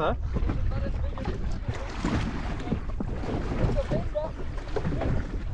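Water laps and splashes against a small boat's hull.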